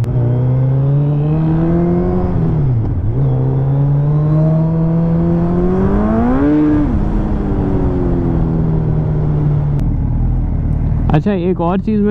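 A motorcycle engine hums, rising in pitch as it speeds up and dipping at each gear change.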